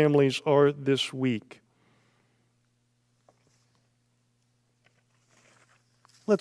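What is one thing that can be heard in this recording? An older man speaks calmly and slowly into a microphone.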